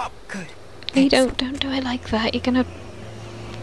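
A young woman grunts and cries out with strain.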